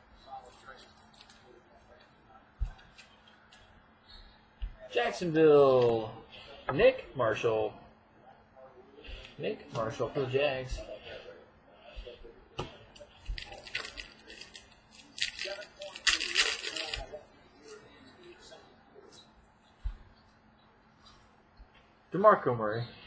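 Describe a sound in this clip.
Trading cards shuffle and rustle between fingers.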